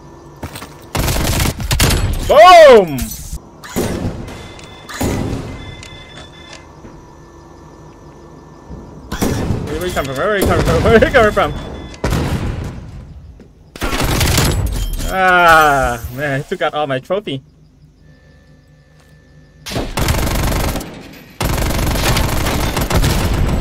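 Gunfire bursts out in quick rapid volleys.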